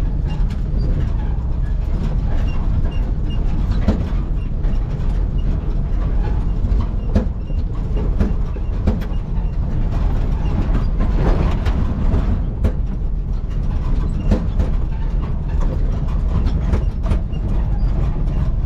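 A vehicle engine rumbles low and steady from inside the cab.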